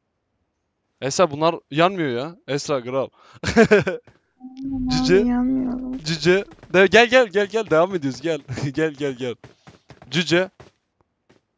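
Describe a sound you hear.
A man talks excitedly through a close microphone.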